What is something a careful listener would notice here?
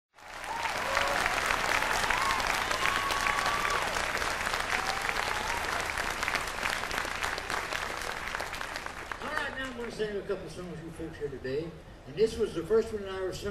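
A string band plays a fast, lively tune outdoors.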